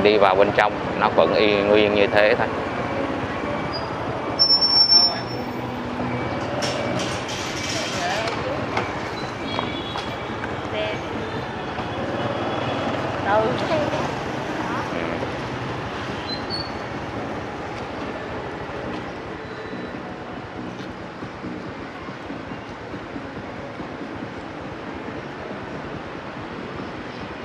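Distant street traffic hums steadily outdoors.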